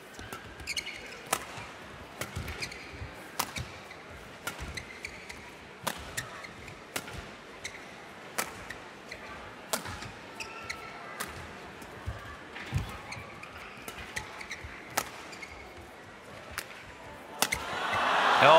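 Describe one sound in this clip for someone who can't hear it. Badminton rackets strike a shuttlecock back and forth.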